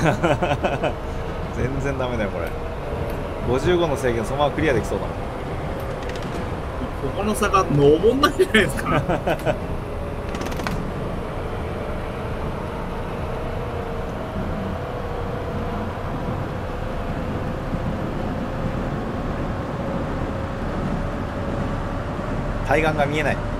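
A train motor hums steadily while rolling along rails.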